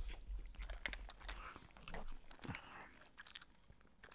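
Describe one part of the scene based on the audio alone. Ice cubes clink against a glass as a straw stirs them close to a microphone.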